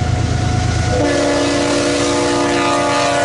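A train horn blasts loudly.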